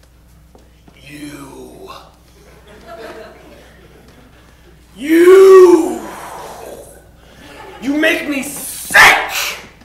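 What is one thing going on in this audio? A young man shouts loudly and dramatically.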